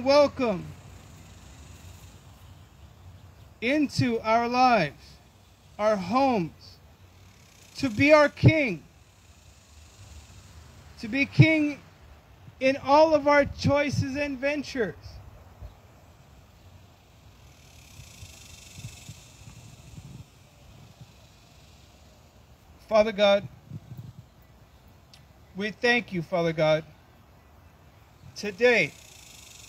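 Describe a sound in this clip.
A man speaks into a microphone outdoors, calmly, in short phrases with pauses.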